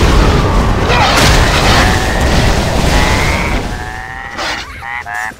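Magic spells crackle and burst in a game battle.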